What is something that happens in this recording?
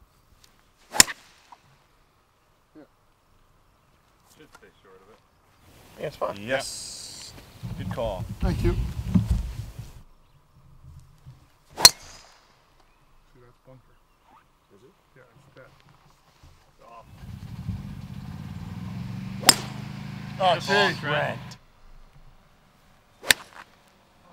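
A golf club sharply strikes a ball outdoors.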